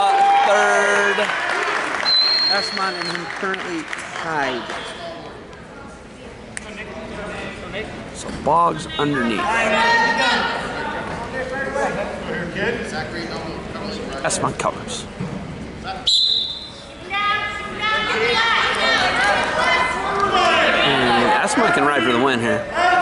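Spectators in an echoing gym shout and cheer.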